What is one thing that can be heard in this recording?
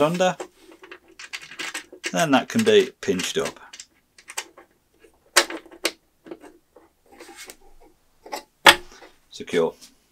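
Metal clamp parts click as they are fitted together.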